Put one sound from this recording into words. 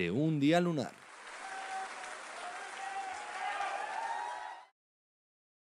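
A crowd cheers and shouts with joy.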